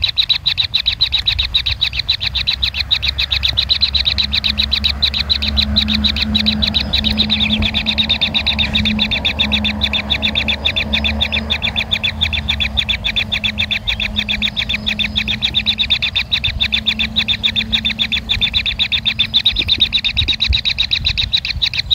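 Kingfisher nestlings give rapid, ticking begging calls.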